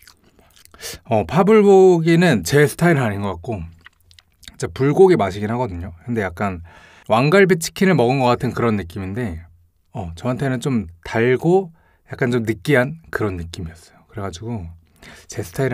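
A young man talks calmly and close to a microphone.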